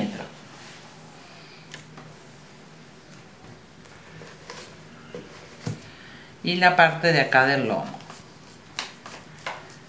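A sheet of paper rustles as it is handled.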